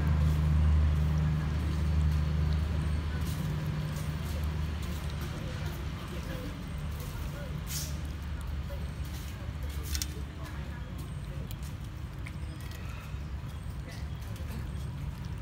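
Cats lap and chew food with soft, wet smacking sounds.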